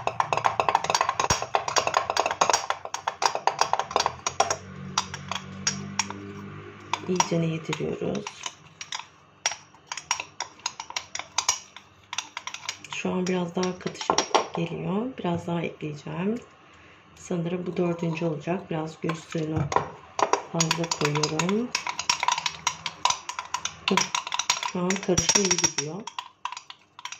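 A spoon clinks rapidly against a small glass jar while stirring.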